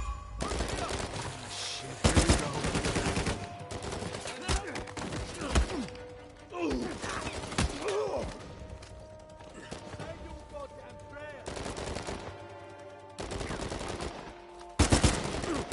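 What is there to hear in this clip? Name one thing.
Gunfire bursts out in loud rapid shots.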